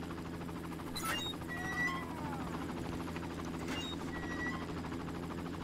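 An electronic keypad beeps.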